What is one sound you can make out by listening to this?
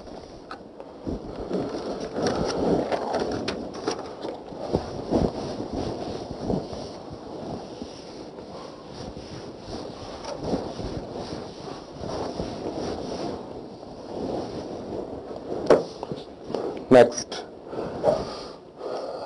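A felt eraser rubs across a whiteboard in quick, squeaky strokes.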